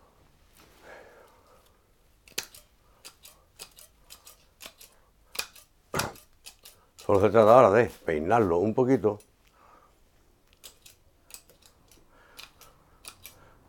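Pruning shears snip through small twigs.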